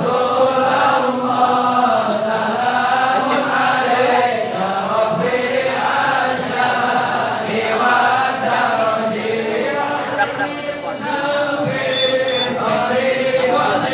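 A large crowd of men chants together in unison.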